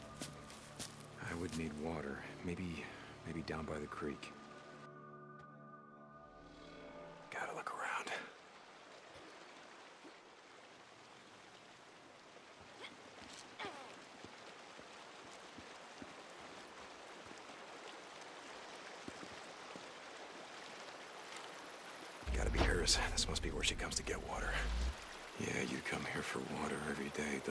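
Footsteps crunch on gravel and scuff on concrete.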